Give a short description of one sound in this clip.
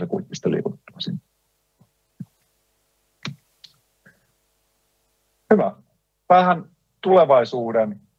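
A young man speaks calmly through a microphone on an online call, with pauses.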